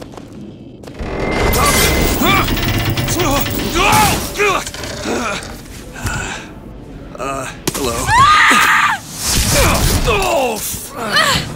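A young woman shouts in alarm, close by.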